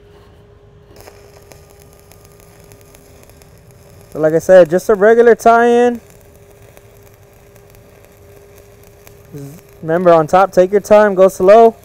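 A welding arc crackles and hisses steadily.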